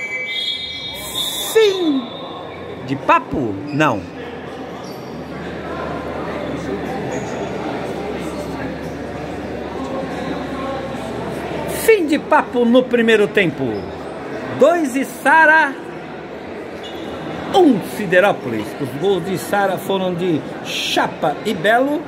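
Men shout across an indoor court that echoes.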